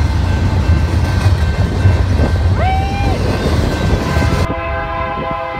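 Freight cars rumble and clatter past on the rails.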